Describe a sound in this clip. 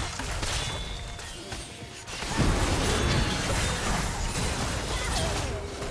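Spell blasts, gunshots and impacts of a fantasy battle game crash together in a fight.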